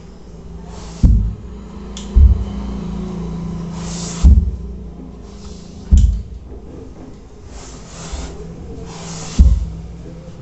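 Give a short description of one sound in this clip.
An iron thumps down onto fabric.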